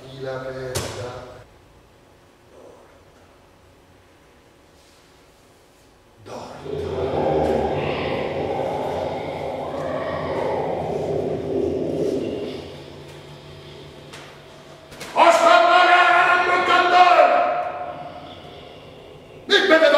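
A man declaims loudly in a large echoing room.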